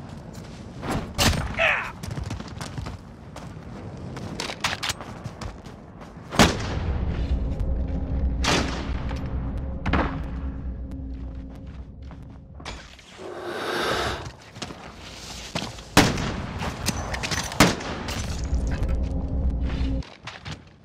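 Gunshots crack sharply in short bursts.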